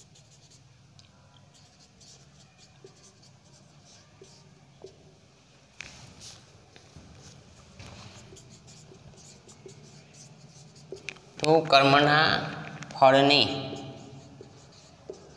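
A marker taps and scratches on a whiteboard.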